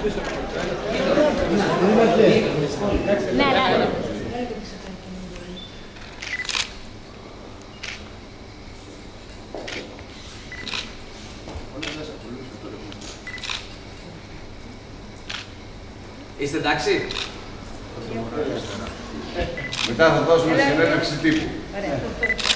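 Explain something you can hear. Several men and women chat with each other nearby.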